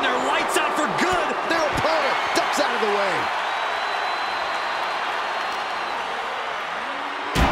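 A large crowd cheers and roars loudly.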